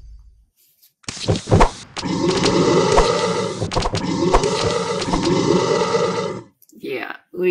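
Cartoonish battle sound effects crash, thump and pop from a game.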